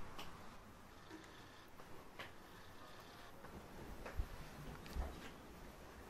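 A sheet rustles and flaps.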